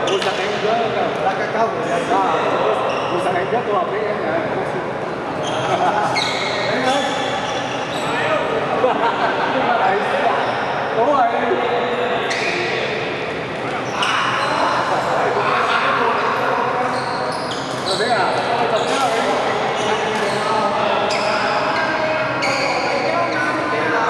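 Several men talk and call out across a large echoing hall.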